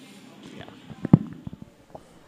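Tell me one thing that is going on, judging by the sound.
A microphone thumps as it is set down on a lectern.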